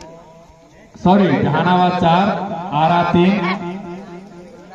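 Young men shout loudly outdoors.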